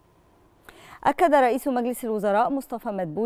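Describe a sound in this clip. A woman speaks clearly and evenly into a close microphone.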